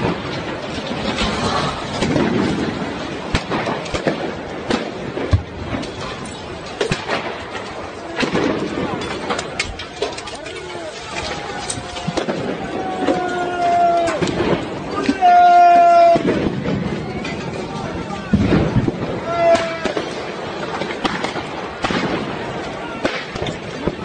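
A large fire crackles and roars.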